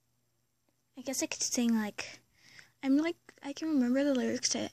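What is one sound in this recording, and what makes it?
A young girl speaks close to a phone microphone, with animation.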